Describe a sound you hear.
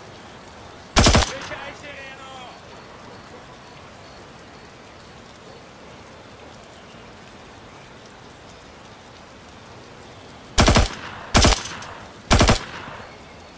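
A rifle fires single loud shots close by.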